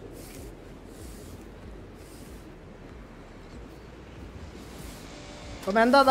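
A broom swishes softly across a floor in short strokes.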